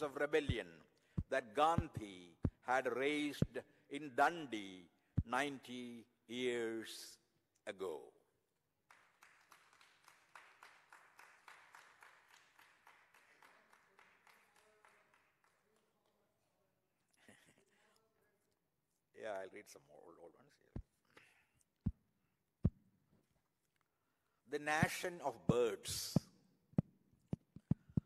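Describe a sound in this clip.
An elderly man recites with feeling through a microphone.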